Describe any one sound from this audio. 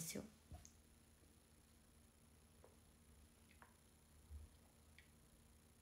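A young woman sips a drink.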